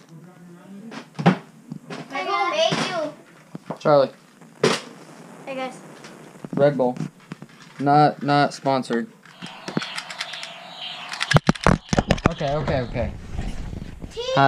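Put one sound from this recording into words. A young child talks and squeals excitedly close by.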